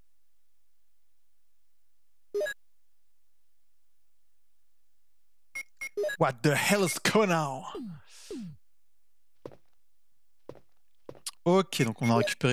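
Short electronic menu blips sound.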